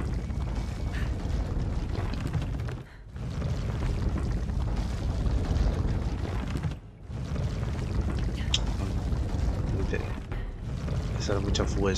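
A young man talks close through a headset microphone.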